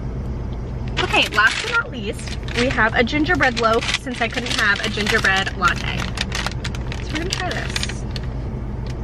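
Paper wrapping crinkles and rustles.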